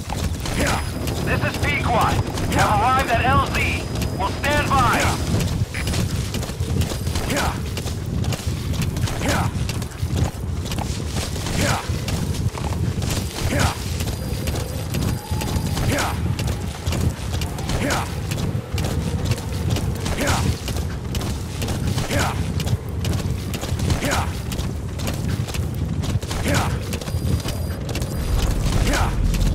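A horse gallops with steady, rapid hoofbeats on dry ground.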